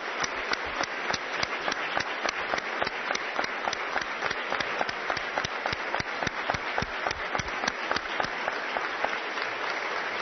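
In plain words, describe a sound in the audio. Hands clap in a steady, even rhythm.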